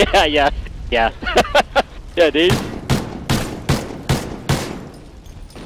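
Rapid gunfire bursts loudly in a video game.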